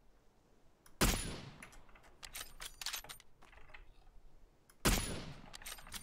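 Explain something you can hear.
A rifle shot cracks sharply.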